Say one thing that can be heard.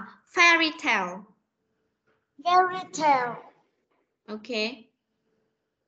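A woman pronounces words slowly and clearly over an online call.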